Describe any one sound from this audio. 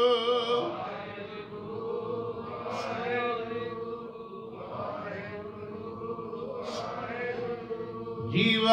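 A man sings slowly and steadily into a microphone, with long held notes.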